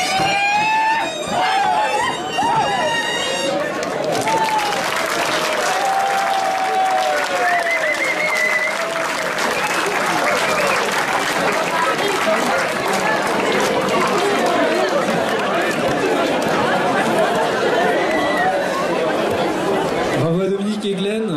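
A crowd of men and women chatter and sing loudly outdoors.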